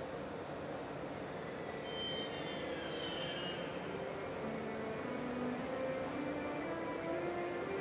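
A passenger train hauled by an electric locomotive pulls in, braking.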